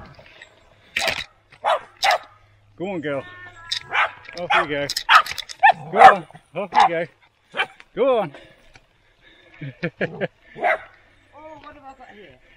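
Small dogs bark and yelp close by.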